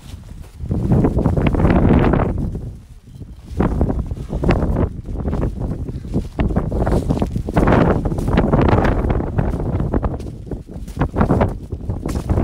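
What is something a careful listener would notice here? A man speaks close to the microphone outdoors.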